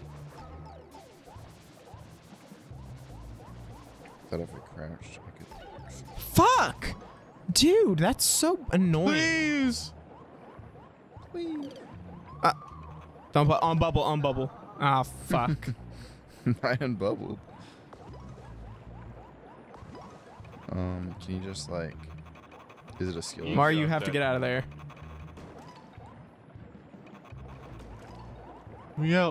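Cartoonish video game sound effects chirp and bloop in short bursts.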